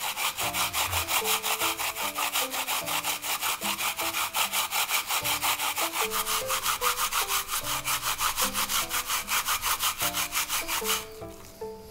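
A pear is grated quickly in fast, scratchy strokes.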